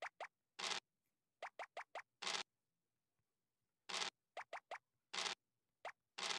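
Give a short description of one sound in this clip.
A die rattles briefly as it rolls.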